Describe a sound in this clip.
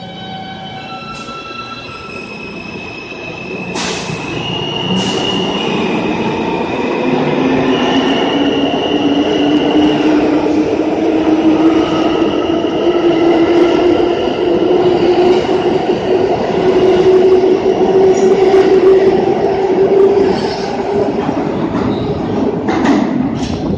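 A subway train starts to move and pulls away, its motor whining and rising in pitch as it gathers speed.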